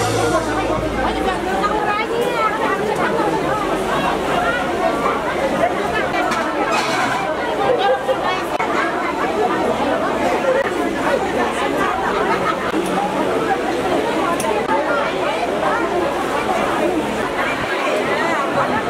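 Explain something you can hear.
Many men and women chatter and talk at once in a busy crowd.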